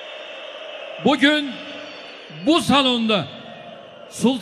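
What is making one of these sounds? A crowd chants in unison.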